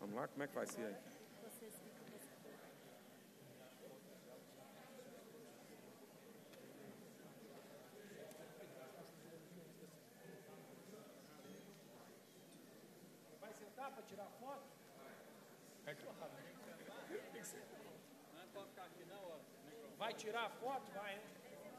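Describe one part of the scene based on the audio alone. A crowd of people murmurs and chatters in a large hall.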